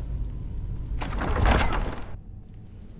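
A heavy door creaks and scrapes open.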